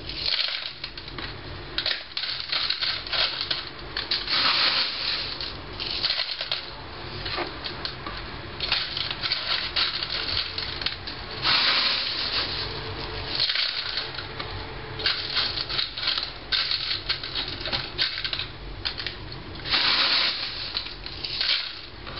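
Leaves rustle as hands handle a plant close by.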